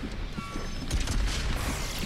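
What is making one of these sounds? Gunfire blasts in a video game.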